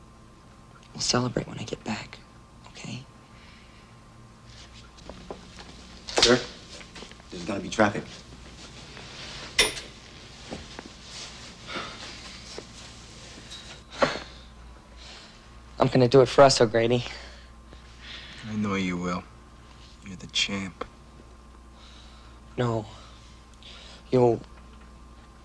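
A young man speaks softly and earnestly nearby.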